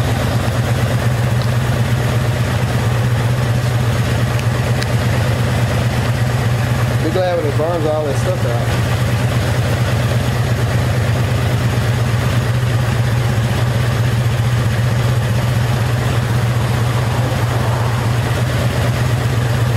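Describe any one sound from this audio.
A motorcycle engine idles roughly and steadily close by.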